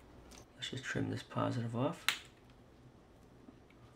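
Wire cutters snip through a thin wire with a sharp click.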